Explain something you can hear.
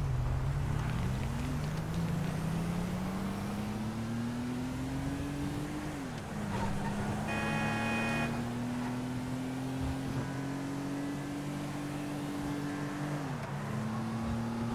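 A car engine hums and rises in pitch as it speeds up, dropping as it shifts gears.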